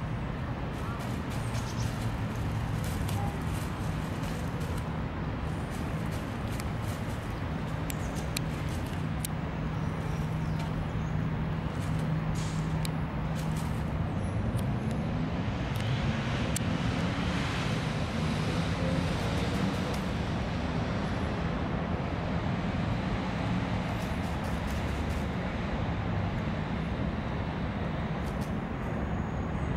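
Crows peck and rustle at plastic wrappers on the ground.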